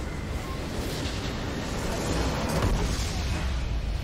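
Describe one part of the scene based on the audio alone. A loud game explosion booms and rumbles.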